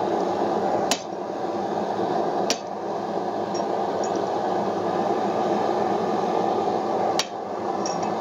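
A hammer strikes metal on an anvil with sharp ringing clangs.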